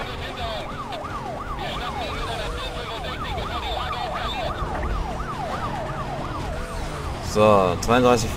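A police siren wails rapidly up and down close by.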